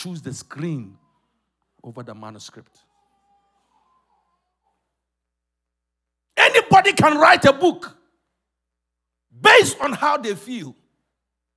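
A man preaches with animation into a microphone, in short bursts with pauses.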